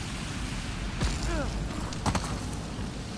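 Rocks tumble and clatter down a slope.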